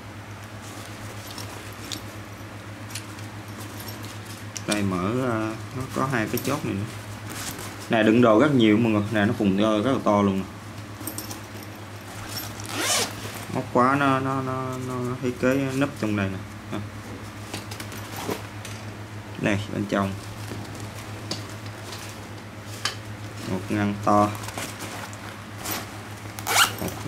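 Nylon fabric rustles as a bag is handled.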